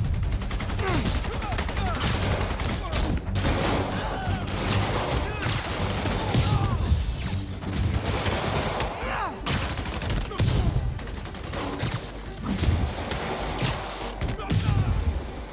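Punches and kicks thud and crack in a fast game fight.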